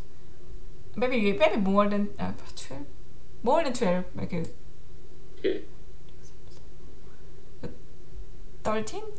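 A young woman speaks calmly and close to a microphone, in short bursts.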